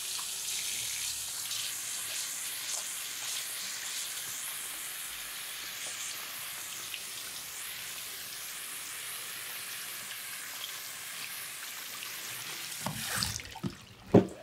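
Water sprays steadily from a shower head onto hair.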